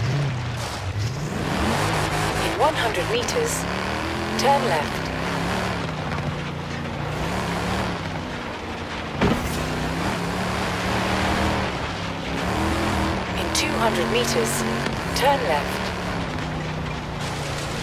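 A car engine hums steadily and revs up as the car speeds along.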